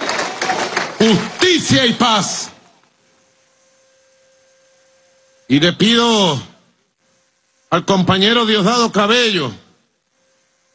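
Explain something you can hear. A large crowd chants loudly in unison.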